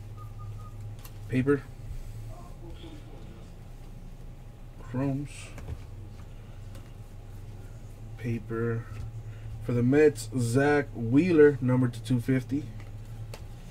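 Trading cards rustle as they are flicked through by hand.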